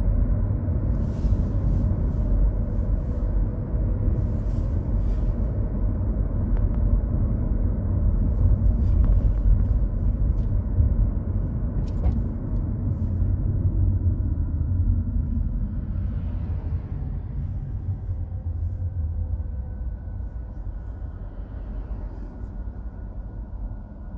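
Tyres roll over a wet road with a steady rush.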